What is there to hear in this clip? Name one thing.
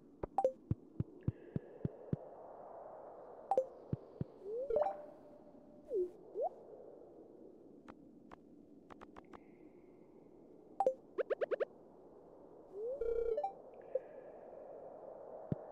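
Short interface clicks and blips tick sharply, now and then.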